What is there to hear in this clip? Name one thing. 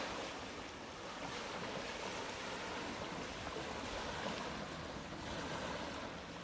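Small waves lap steadily against a pebbly shore.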